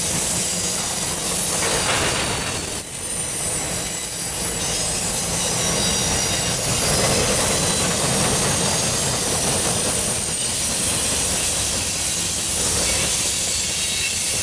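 A long freight train rolls past, its wheels clattering on steel rails.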